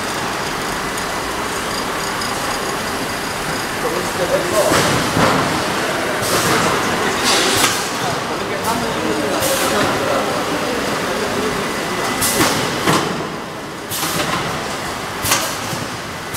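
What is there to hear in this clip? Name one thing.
Conveyor machinery hums and rattles steadily.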